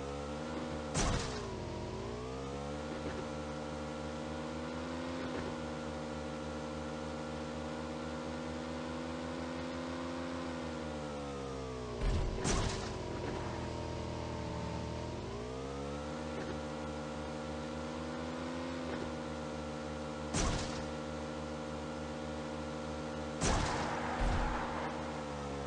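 A motorcycle thumps hard over bumps in rough ground.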